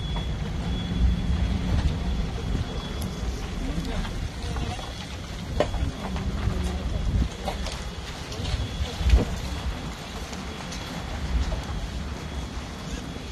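Wind blusters outdoors against the microphone.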